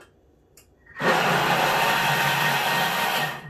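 A kitchen machine starts up and whirs loudly and steadily.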